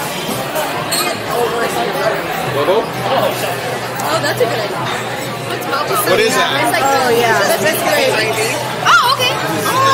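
A crowd murmurs in the background of a busy room.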